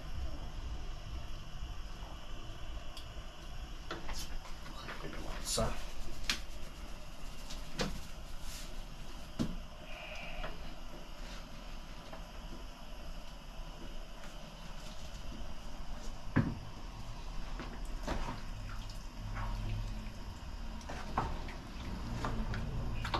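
A wooden spoon stirs and scrapes food in a pot.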